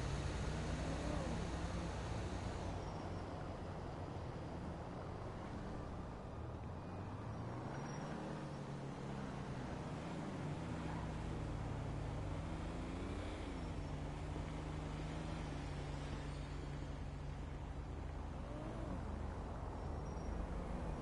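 A car engine hums steadily and rises and falls in pitch as it revs.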